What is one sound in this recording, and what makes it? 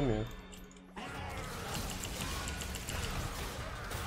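Video game spell effects whoosh and crackle.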